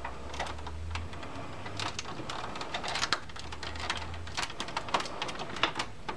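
Fingers tap and rub against a plastic computer case.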